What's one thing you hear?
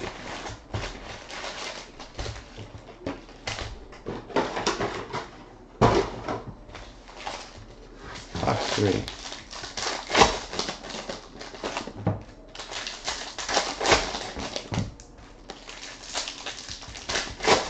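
Foil card packs crinkle and rustle as they are handled.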